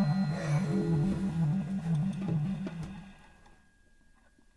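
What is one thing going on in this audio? Drums and cymbals keep a swing beat.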